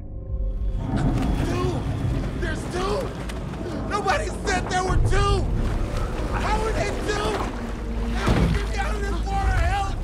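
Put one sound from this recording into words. Men and women shout and cry out in the water nearby.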